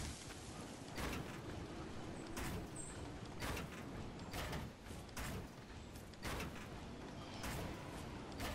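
Wooden walls and ramps snap into place in quick clicks.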